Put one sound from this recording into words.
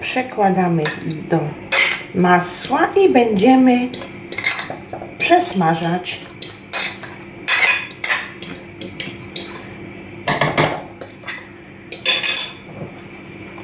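A spoon scrapes and taps against a glass bowl.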